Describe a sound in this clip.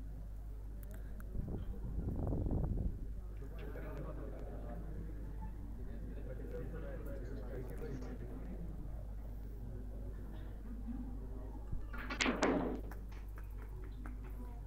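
A crowd murmurs quietly nearby.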